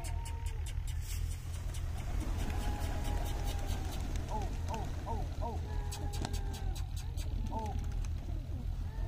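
Many pigeon wings flap and clatter as a flock takes off.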